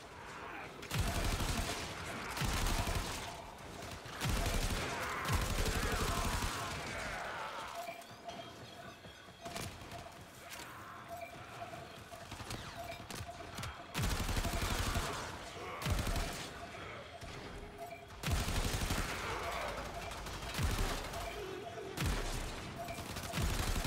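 Energy blasts explode with heavy booms.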